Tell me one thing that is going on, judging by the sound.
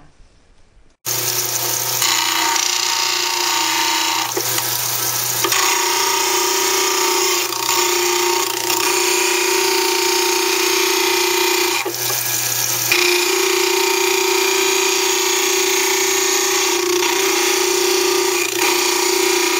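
A grinding wheel whirs loudly and steadily.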